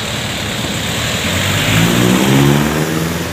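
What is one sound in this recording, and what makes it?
A vehicle engine rumbles close by, growing louder.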